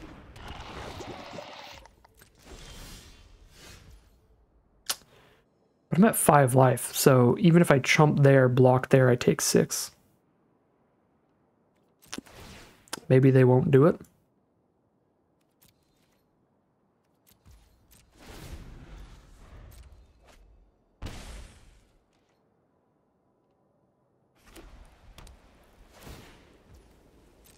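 Soft digital chimes and whooshes of a card game play now and then.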